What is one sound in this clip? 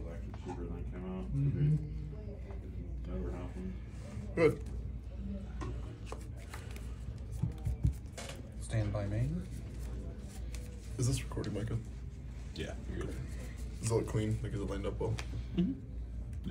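Playing cards slap softly onto a cloth mat.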